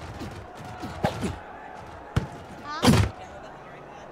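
Football players collide with dull thuds.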